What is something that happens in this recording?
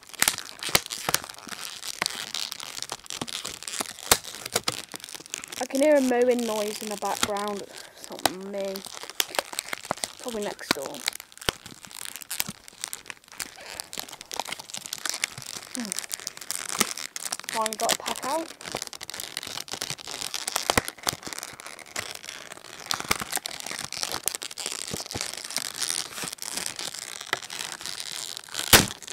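Plastic and cardboard rustle and crinkle close by as hands handle them.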